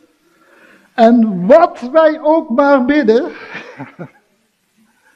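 A man preaches with animation into a microphone.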